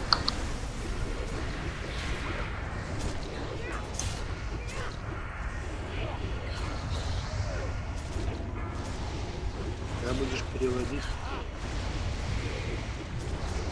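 Magic blasts crackle and boom in a fast battle.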